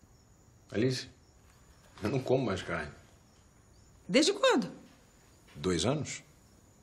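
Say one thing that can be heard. A man speaks calmly nearby in short phrases.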